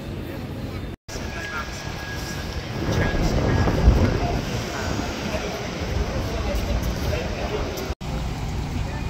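A crowd of people chatters on a busy street.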